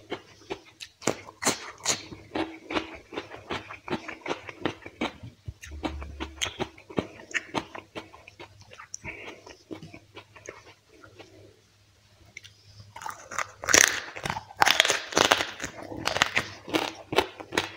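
A man chews and smacks his lips loudly, close to a microphone.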